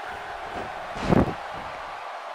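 A metal chair clangs against a body.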